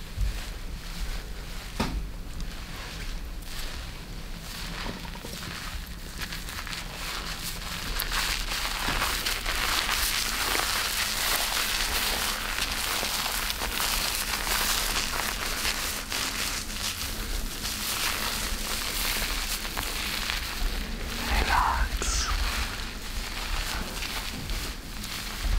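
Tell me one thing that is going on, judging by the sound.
Fingers rub and rustle through hair on a scalp.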